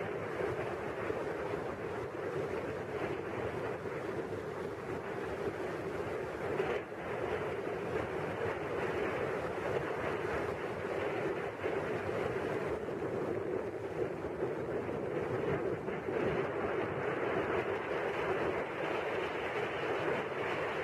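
Water rushes and splashes against a moving boat's hull.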